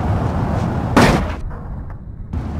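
A car thumps over a speed bump.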